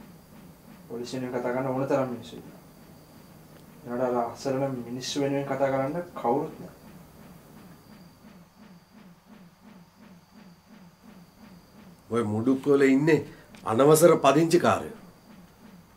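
A middle-aged man speaks calmly and seriously nearby.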